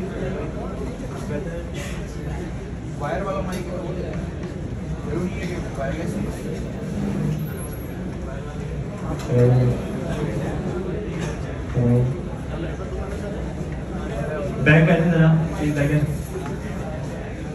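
A young man speaks into a microphone through loudspeakers in a large echoing room.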